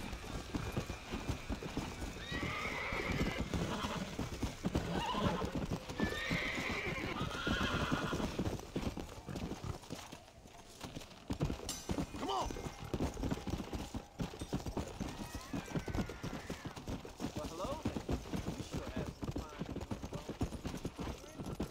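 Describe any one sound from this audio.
Horse hooves thud steadily on dry ground at a gallop.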